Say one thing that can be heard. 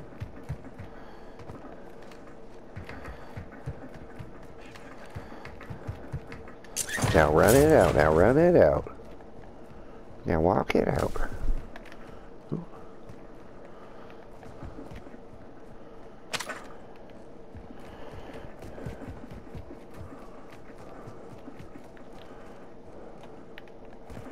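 Footsteps patter quickly across a metal roof and hard ground.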